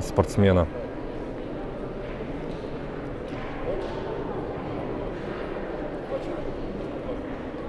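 An elderly man talks with animation nearby in a large echoing hall.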